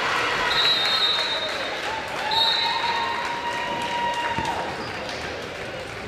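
A crowd cheers and claps in a large echoing gym.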